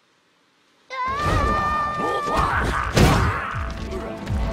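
Heavy blows thud and whoosh in a fight.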